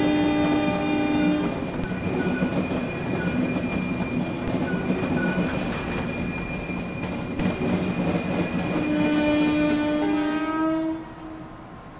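A train rolls past close by, its wheels clattering over the rails.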